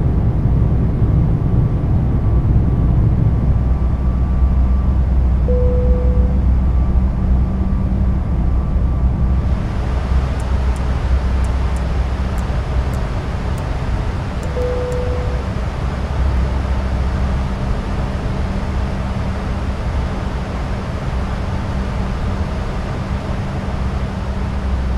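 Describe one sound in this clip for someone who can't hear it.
A jet engine roars steadily in a low, rumbling drone.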